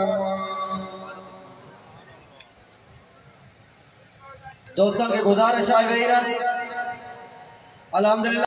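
A man chants loudly into a microphone, heard through loudspeakers.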